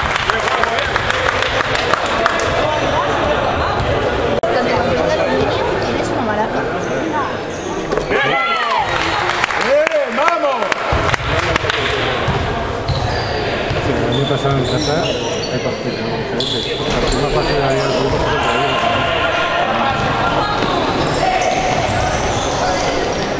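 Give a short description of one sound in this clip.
Players shout and call out in a large echoing hall.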